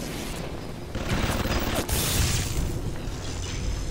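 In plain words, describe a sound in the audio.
An electric zap crackles in a game.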